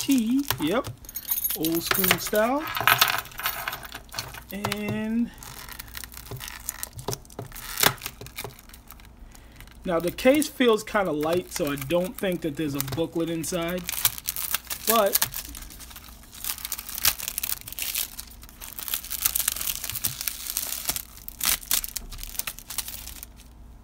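A hard plastic case clicks and taps.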